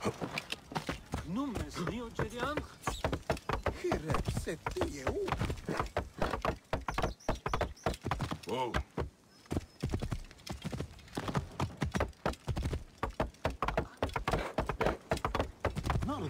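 A horse's hooves gallop quickly over the ground.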